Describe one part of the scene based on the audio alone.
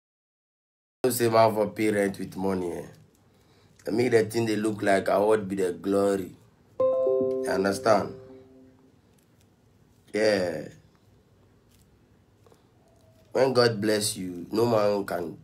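A young man speaks with animation close to a phone microphone.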